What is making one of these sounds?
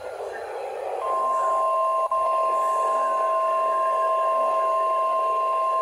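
A weather radio sounds a loud, steady, piercing alert tone.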